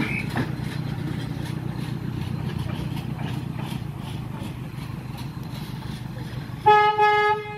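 A small steam locomotive chugs past on the track.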